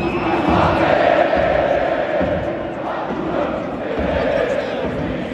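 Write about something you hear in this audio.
A huge stadium crowd chants and sings loudly in unison, echoing around an open arena.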